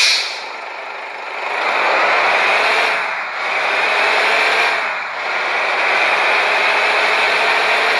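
A bus engine accelerates.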